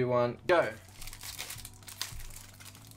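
A foil card pack crinkles in someone's hands.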